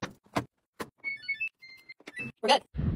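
A washing machine beeps as its buttons are pressed.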